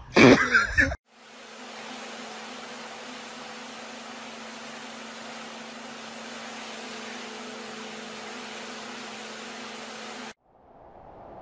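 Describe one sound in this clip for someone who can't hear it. A pressure washer hums and sprays water steadily.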